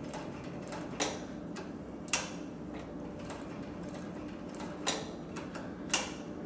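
A sewing machine clicks sharply now and then.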